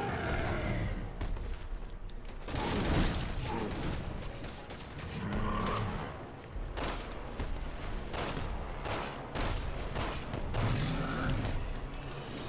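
A huge creature roars and growls loudly.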